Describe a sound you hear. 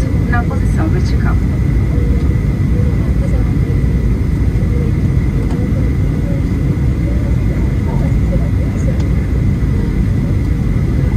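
A jet engine roars steadily with a deep, constant rumble.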